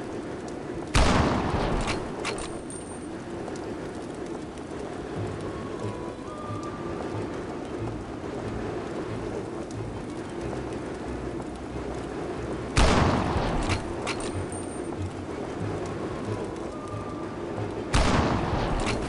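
A rifle shot cracks loudly, followed by a short ringing echo.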